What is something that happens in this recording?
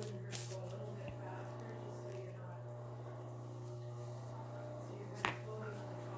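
A damp sponge dabs against clay.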